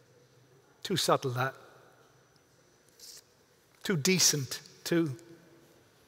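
A man reads aloud calmly into a microphone.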